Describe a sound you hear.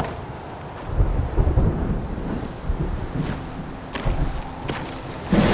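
Footsteps thud on dry ground.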